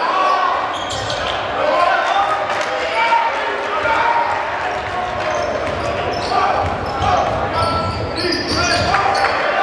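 A crowd murmurs and calls out in an echoing gym.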